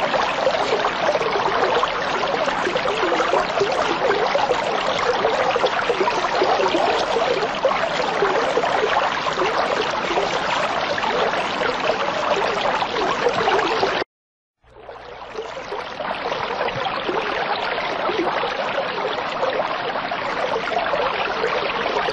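Water bubbles and gurgles steadily from an aquarium filter.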